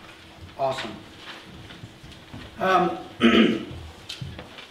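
A man coughs nearby.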